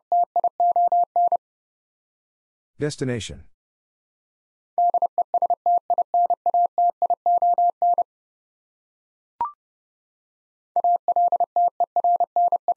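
A telegraph key taps out Morse code as quick, steady beeps.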